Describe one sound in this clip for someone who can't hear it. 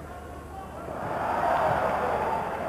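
A crowd of spectators roars and cheers.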